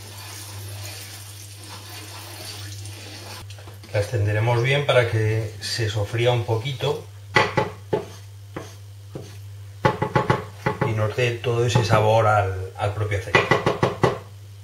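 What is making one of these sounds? A wooden spoon stirs and scrapes gently in a frying pan.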